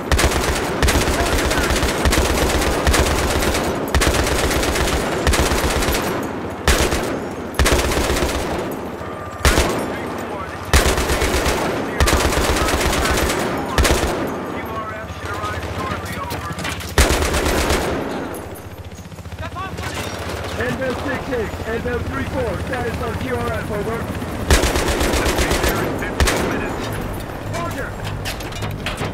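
A heavy machine gun fires in rapid bursts.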